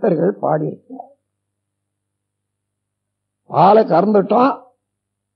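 An elderly man speaks calmly and slowly, in short phrases with pauses.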